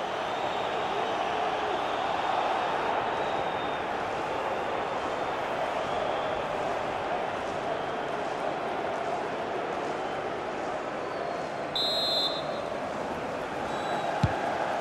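A stadium crowd roars and chants steadily.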